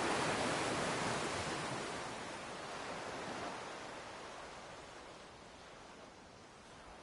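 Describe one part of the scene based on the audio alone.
Waves rush and wash in, slowly fading away.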